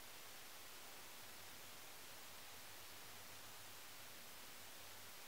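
A makeup brush brushes softly over skin.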